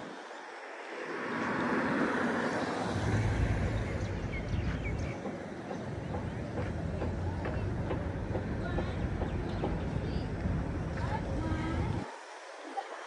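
A car drives past close by on the road.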